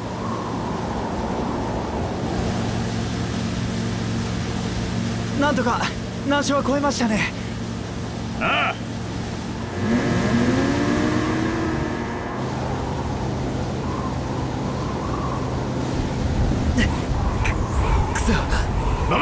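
A snowmobile engine drones steadily.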